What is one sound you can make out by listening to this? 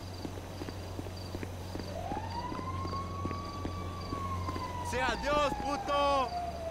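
Footsteps tap on hard pavement.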